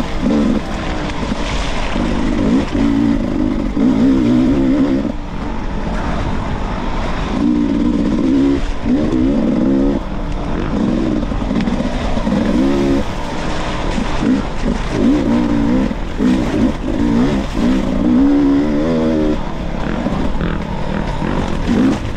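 Tyres crunch over a bumpy dirt trail.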